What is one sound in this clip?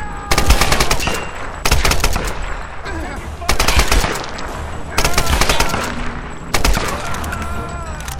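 A rifle fires in loud bursts.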